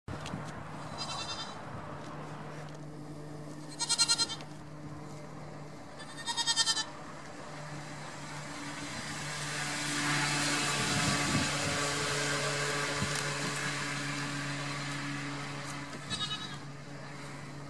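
A young goat bleats in short, high, shaky bursts.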